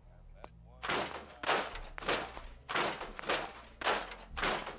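Items are scrapped with a series of sharp clanks.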